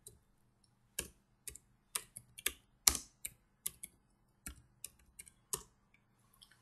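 Keyboard keys clatter in quick bursts of typing.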